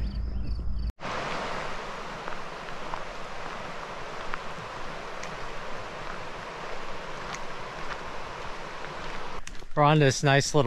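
A river rushes and flows steadily.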